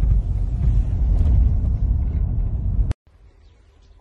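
Tyres roll over a rough dirt road.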